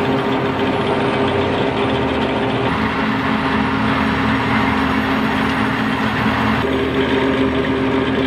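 A harvester's header rattles as it cuts crops.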